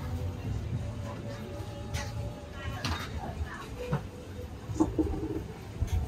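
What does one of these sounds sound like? Dishes and utensils clink at a food stall.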